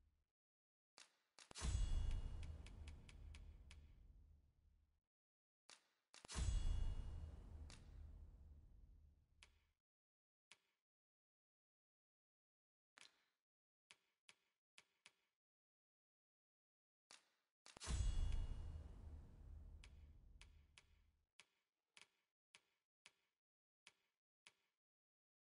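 Short menu clicks tick as selections change.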